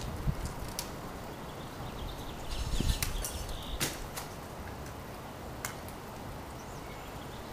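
Tree branches rustle and creak under someone climbing.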